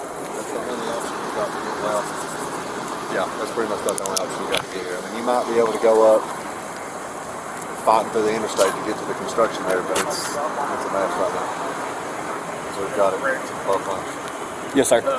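A man talks on a phone close by.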